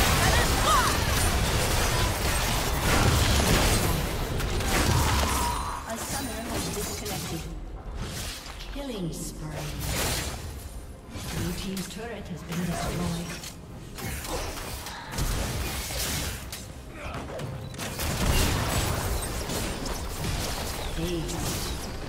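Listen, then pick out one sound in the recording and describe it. Video game spell effects crackle and boom in a busy fight.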